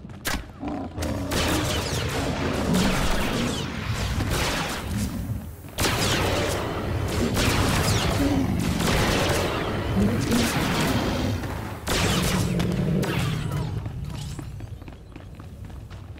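Weapon blasts and impacts crash in quick succession.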